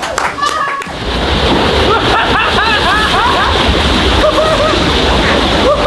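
Water splashes loudly down a slide.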